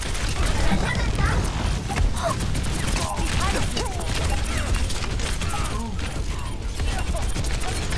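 Energy weapons zap and crackle in a game.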